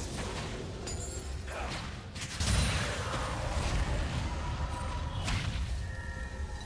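Spell effects whoosh and crackle in a fight.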